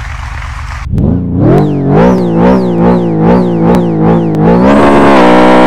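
A sports car engine revs in quick bursts.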